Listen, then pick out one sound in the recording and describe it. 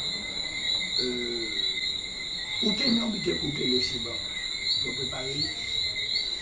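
A man speaks calmly nearby, with pauses.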